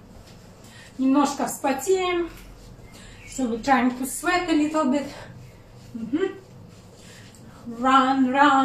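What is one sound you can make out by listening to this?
A young woman sings in bursts close by.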